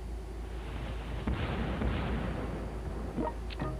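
Ship guns fire with heavy blasts.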